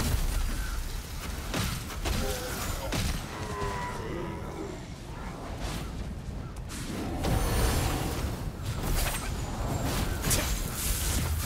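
Magic spells burst and crackle in combat.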